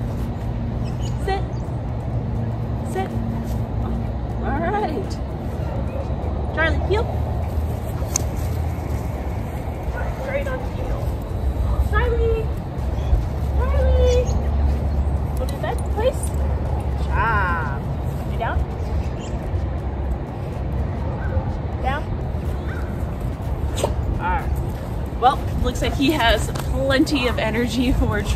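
A woman talks calmly and encouragingly to a dog nearby.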